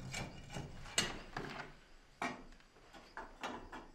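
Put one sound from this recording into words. Small objects knock and clatter on a wooden shelf as a man handles them.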